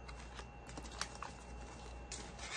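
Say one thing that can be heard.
Paper money rustles in a hand.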